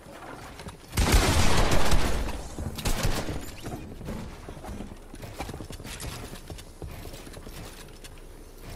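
Shotguns fire in sharp blasts.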